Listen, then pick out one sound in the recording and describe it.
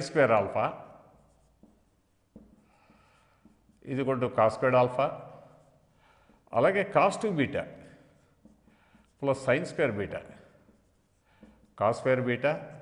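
An elderly man speaks calmly in short bursts, close to a microphone.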